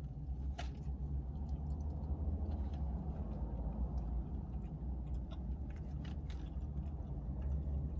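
A young woman chews food with her mouth open.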